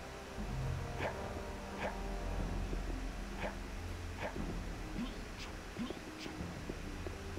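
Footsteps tread slowly on a stone floor in an echoing space.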